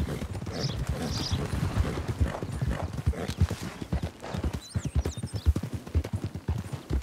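Horse hooves thud rapidly on soft ground at a gallop.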